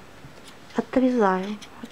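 Scissors snip through yarn.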